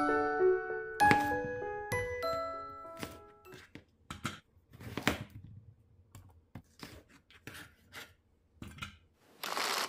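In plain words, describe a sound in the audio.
A knife chops through peppers on a cutting board.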